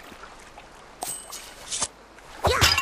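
A short chime rings out as an item is picked up.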